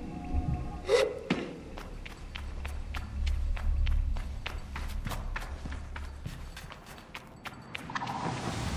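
Quick footsteps run across stone.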